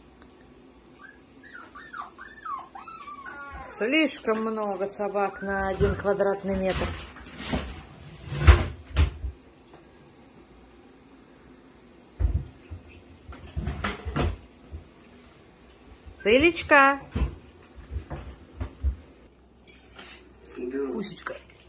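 Puppies whine and yelp up close.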